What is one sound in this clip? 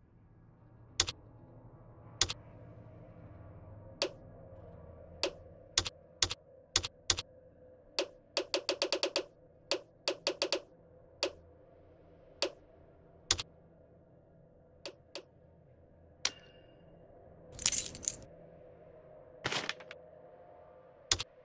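Short menu clicks and ticks sound as selections change.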